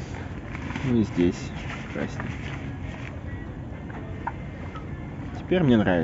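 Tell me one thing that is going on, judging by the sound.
A plastic tarp rustles and crinkles as a hand pulls it.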